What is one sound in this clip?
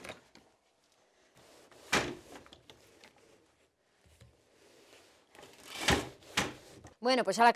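A wooden loom beater knocks sharply against woven cloth.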